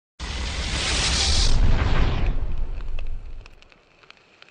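Flames roar in a loud, rushing burst that fades away.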